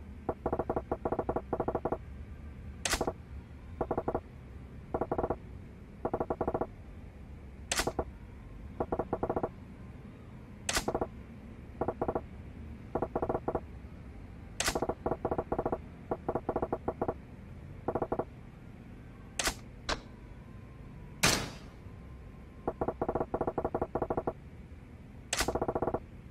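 Quick soft blips tick rapidly in short bursts, with pauses between.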